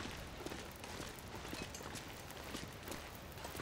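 A small fire crackles and pops.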